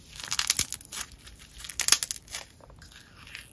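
Small plastic beads rattle and crunch in a hand.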